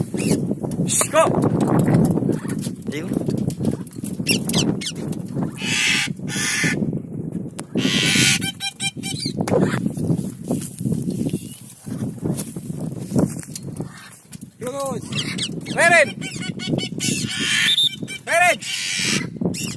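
A bird of prey cries out with shrill, falling calls.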